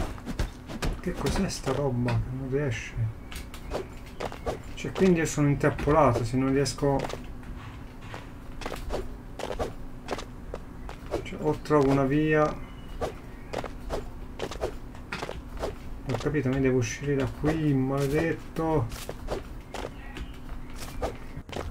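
A pickaxe chops blocks with repeated sharp knocks.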